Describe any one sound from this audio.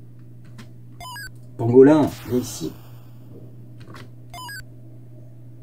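Short electronic bleeps from a video game sound now and then.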